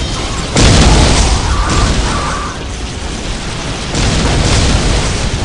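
Explosions boom with heavy, rumbling blasts.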